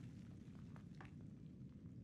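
A book's paper pages rustle.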